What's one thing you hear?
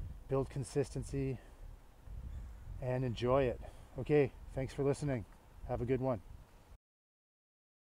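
A man talks casually and close up, outdoors.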